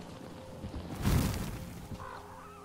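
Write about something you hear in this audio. A gun fires a loud burst.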